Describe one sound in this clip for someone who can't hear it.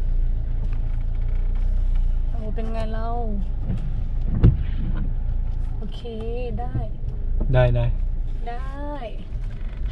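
A car rumbles low and steady from inside as it drives.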